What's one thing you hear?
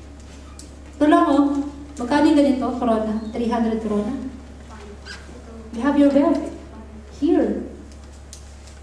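A young woman speaks calmly into a microphone, heard through a loudspeaker in an echoing room.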